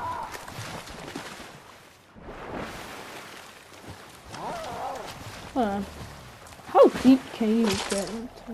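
Water splashes as a swimmer paddles through it.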